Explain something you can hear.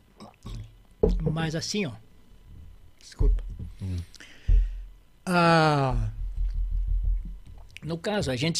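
A younger man talks calmly into a microphone.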